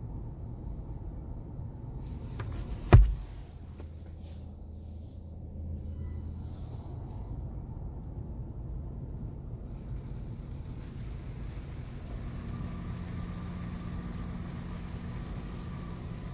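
Water sprays against a car's windows.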